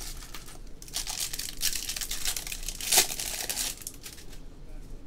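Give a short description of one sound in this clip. A foil wrapper tears open.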